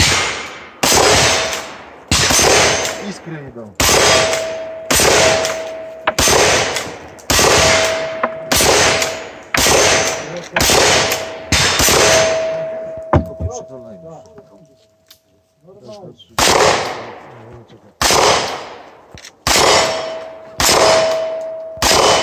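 Metal targets clang with a ringing ping when hit.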